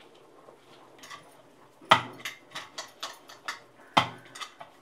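A metal bowl knocks and rattles on a counter.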